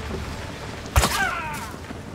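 A bow snaps as an arrow is loosed.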